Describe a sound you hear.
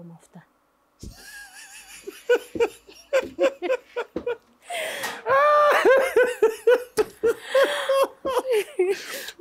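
A man laughs loudly and heartily close to a microphone.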